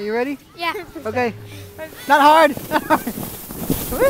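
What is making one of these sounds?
A young girl laughs and talks excitedly close by.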